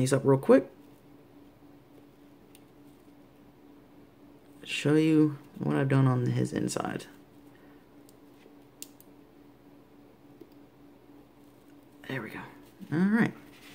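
Small plastic parts click softly as they are snapped together.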